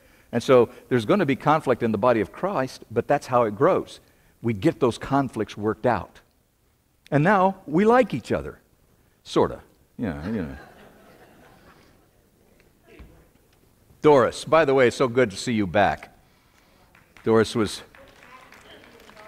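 A man lectures through a microphone in a large echoing hall.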